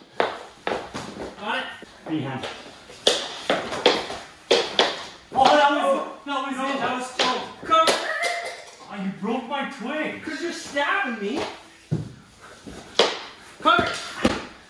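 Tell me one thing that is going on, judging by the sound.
Hockey sticks clack and slap against a hard floor.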